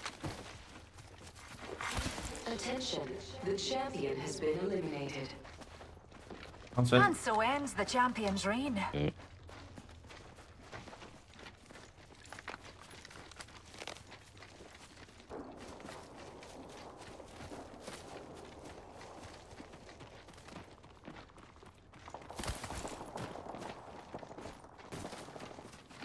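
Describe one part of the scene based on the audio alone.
Footsteps patter quickly on the ground while running.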